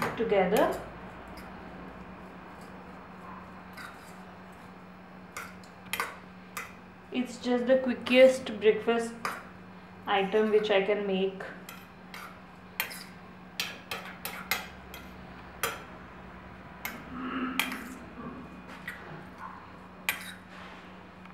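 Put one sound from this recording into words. A metal spoon clinks against a steel bowl while stirring.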